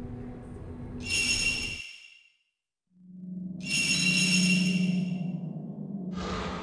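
A soft electronic chime rings out twice.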